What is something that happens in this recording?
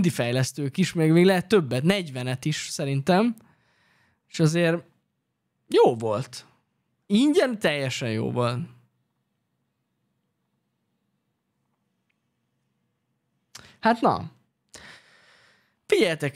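A young man talks with animation into a close microphone, with pauses.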